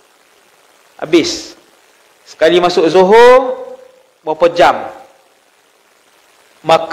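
A man speaks with animation through a microphone, in short bursts with pauses.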